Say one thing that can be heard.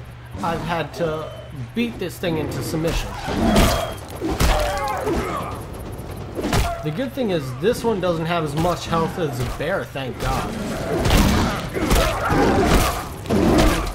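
A wooden club thuds against a wolf.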